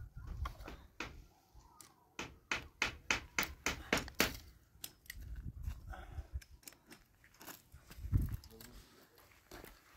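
A crutch taps on stony ground.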